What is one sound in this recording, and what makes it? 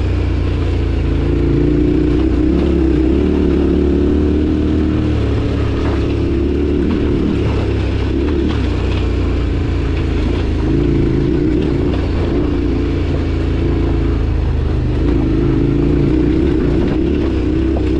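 Tyres crunch and rattle over loose stones.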